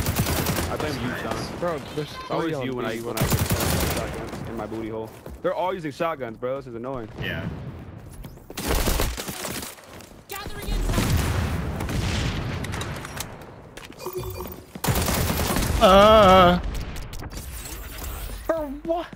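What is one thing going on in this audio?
Gunfire cracks in quick bursts.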